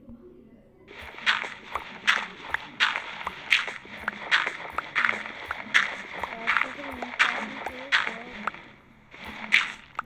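Game blocks crunch again and again as they are dug away quickly.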